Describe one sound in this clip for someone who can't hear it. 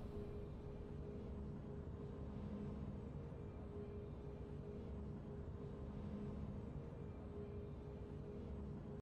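Triumphant game music plays steadily.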